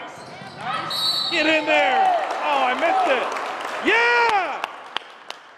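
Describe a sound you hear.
Sneakers squeak sharply on a wooden floor in an echoing gym.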